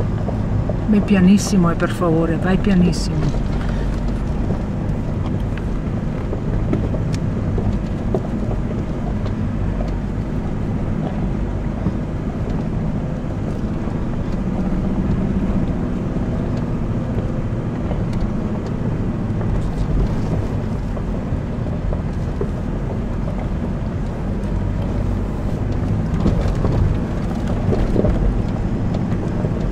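Tyres crunch and bump over loose gravel and rocks.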